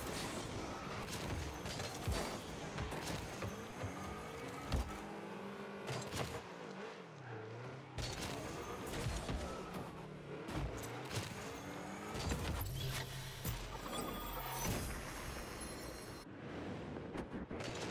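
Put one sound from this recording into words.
A video game car engine hums and revs steadily.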